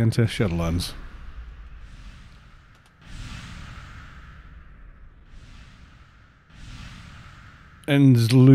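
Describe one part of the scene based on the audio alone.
A magic spell whooshes and crackles in a game.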